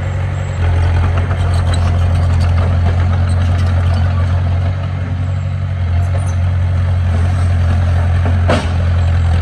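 A dump truck engine rumbles steadily as the truck drives forward.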